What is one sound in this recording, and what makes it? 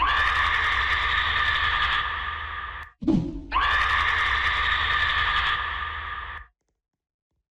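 A creature lets out a loud, shrill, screeching scream.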